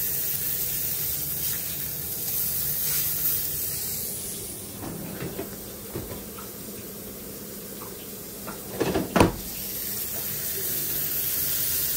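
A metal spatula scrapes across a griddle.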